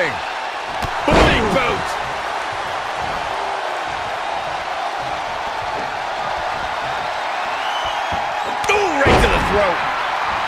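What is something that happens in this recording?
Wrestlers slam onto the ring mat with heavy thuds.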